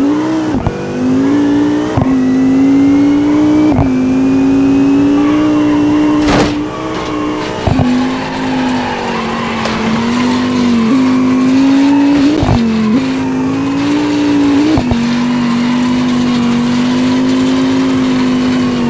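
A racing car engine revs hard and steadily, dipping briefly at each gear change.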